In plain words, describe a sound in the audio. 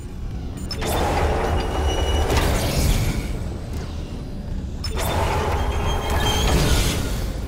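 A deep mechanical rumble drones steadily.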